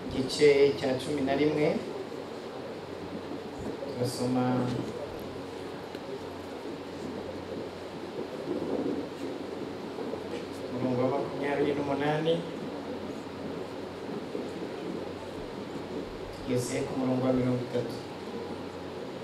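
A man speaks into a microphone in bursts, with pauses, in a large room that echoes a little.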